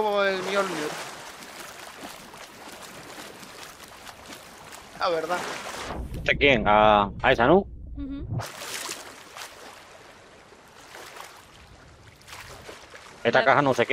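Water splashes softly around a swimmer.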